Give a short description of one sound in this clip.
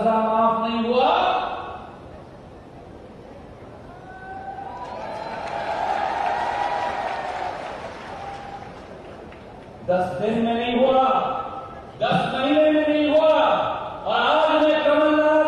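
A young man speaks forcefully and loudly into a microphone over echoing loudspeakers.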